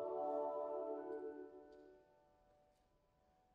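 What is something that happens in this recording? A choir holds a final chord that fades away in a large echoing hall.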